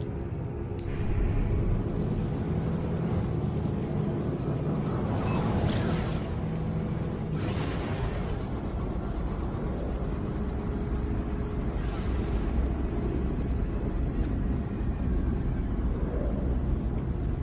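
A spacecraft engine roars louder as the ship speeds up.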